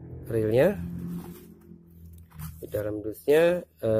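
Cardboard box flaps rustle as hands open them.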